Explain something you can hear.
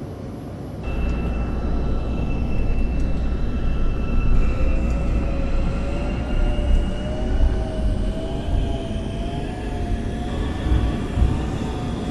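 A train rumbles and rattles along its track.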